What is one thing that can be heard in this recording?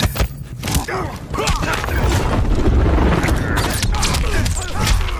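An energy blast roars with a deep rumble.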